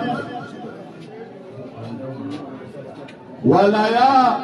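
Several men talk quietly in a low murmur.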